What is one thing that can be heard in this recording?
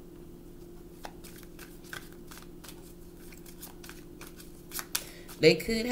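Playing cards riffle and tap as they are shuffled.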